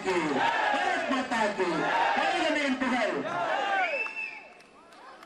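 A man speaks loudly and with energy through a microphone and loudspeakers.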